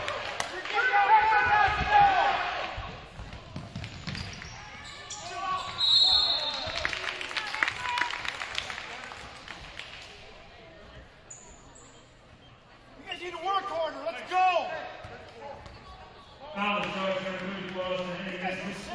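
Spectators in a gym shout and cheer.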